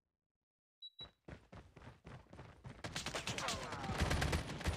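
A gun fires in rapid bursts.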